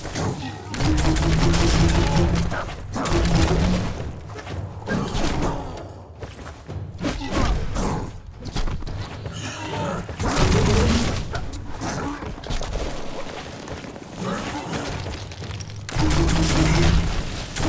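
Heavy blows and impacts thud during a fight.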